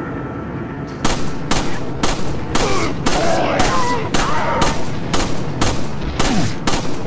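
A handgun fires shot after shot in quick succession.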